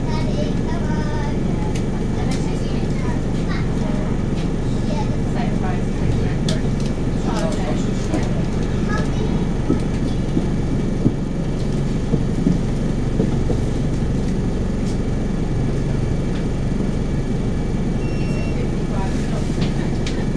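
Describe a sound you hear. A bus engine rumbles steadily while idling.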